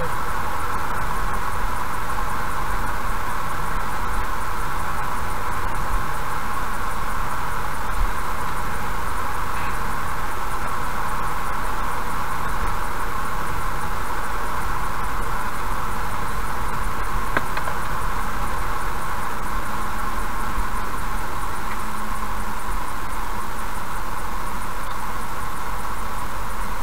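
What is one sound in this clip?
Tyres roll steadily on a paved road.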